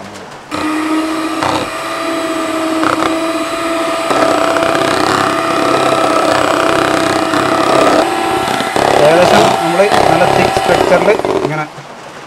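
An electric hand mixer whirs steadily, beaters churning through thick batter.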